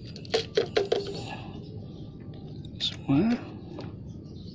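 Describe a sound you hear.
A plastic bottle crinkles in a hand.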